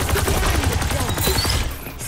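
A laser beam hums loudly.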